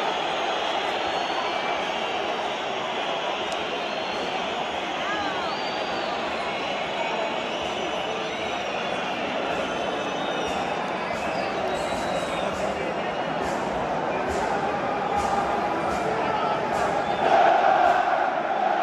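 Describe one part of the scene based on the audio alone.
A large stadium crowd roars and chants loudly in an open arena, swelling near the end.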